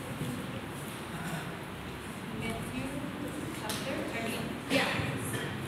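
A young woman speaks calmly into a microphone in an echoing room.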